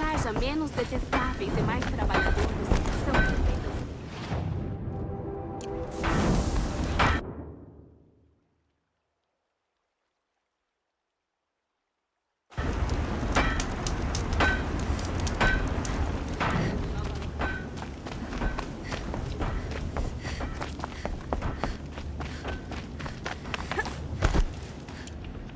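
Footsteps thud quickly on dirt and wooden planks.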